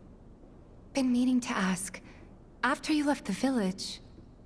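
A young woman speaks softly and warmly, close by.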